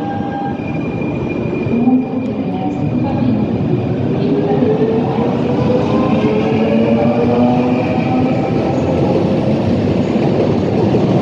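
A train rumbles and rolls along the rails, echoing under a roof.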